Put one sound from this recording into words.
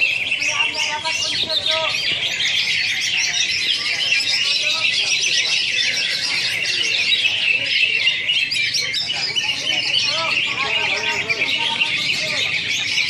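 Many caged songbirds chirp and trill loudly all at once.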